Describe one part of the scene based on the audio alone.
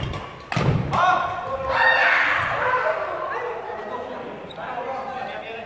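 Men call out loudly to each other across a hall.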